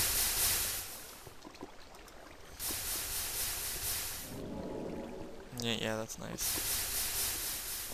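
Water pours onto lava with a loud fizzing hiss.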